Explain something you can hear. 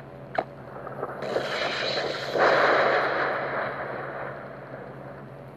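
A magical whoosh swells and slowly fades.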